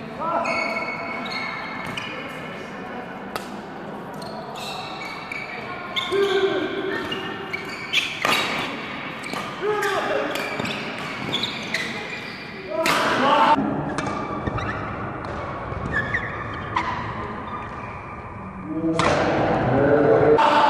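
A shuttlecock is struck sharply by rackets back and forth.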